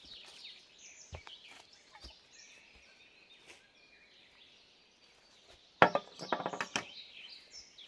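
An axe chops into wood with sharp knocks.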